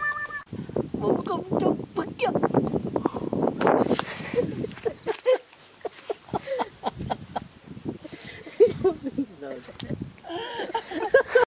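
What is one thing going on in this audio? A young boy shouts and grunts nearby.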